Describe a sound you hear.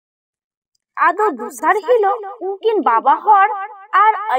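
A woman speaks in a high, wailing voice.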